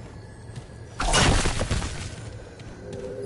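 A sudden blast roars and then fades.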